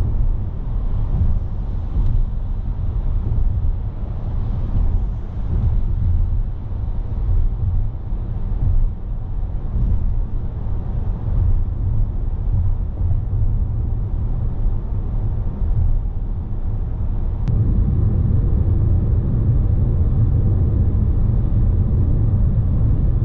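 A car drives along a road with a steady low rumble of tyres and engine, which gets louder toward the end.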